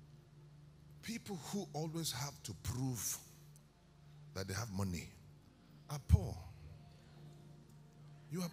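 A man speaks with animation through a microphone and loudspeakers in a large hall.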